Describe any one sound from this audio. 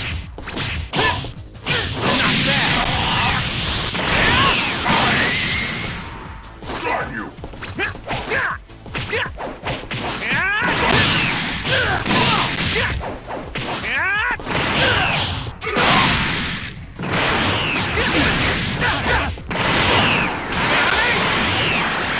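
Punches and kicks land with sharp video game impact sounds.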